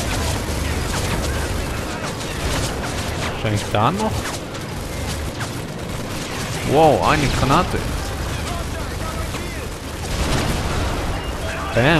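Gunfire rattles in the distance.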